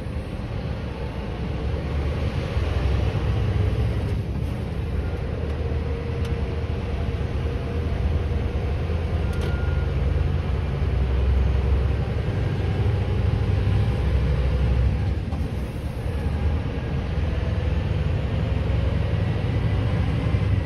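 Tyres hum on a road as a vehicle picks up speed.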